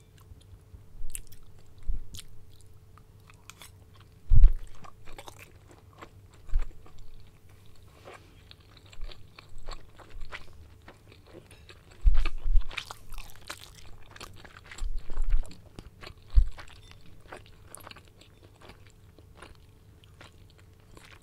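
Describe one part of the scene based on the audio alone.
A woman chews food very close to a microphone, with wet smacking and crunching.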